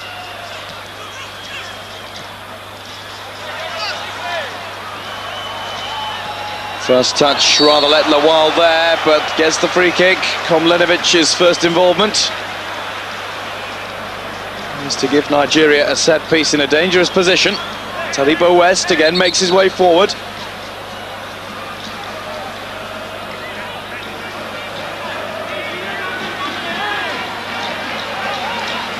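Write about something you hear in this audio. A large stadium crowd murmurs and roars in the distance.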